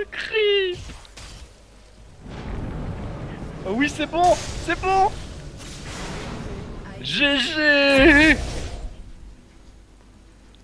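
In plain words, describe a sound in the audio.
Magic blasts and blows clash in a video game battle.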